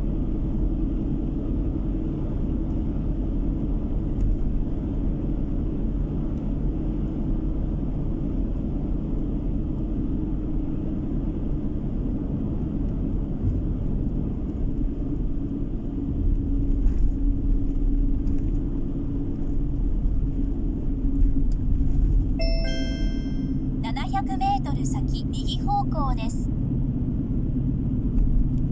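Car tyres roll steadily over the road.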